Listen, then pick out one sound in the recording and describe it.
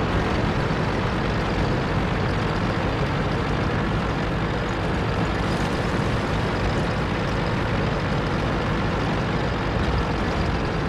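A tank engine rumbles steadily as the tank drives along.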